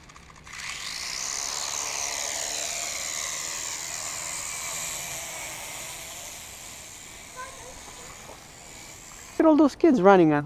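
A small drone's motors whine loudly and steadily, then fade.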